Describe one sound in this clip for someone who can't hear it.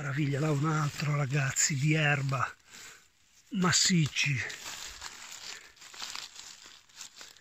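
A hand rustles through dry leaves.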